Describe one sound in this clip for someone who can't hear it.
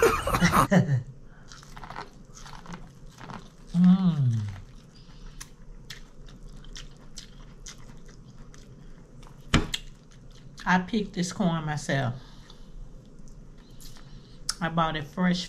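A woman chews and smacks her lips close to a microphone.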